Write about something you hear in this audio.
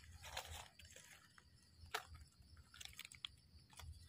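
A mushroom stem snaps softly as it is pulled from the soil.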